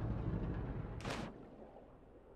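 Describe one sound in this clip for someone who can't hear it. A body splashes heavily into water.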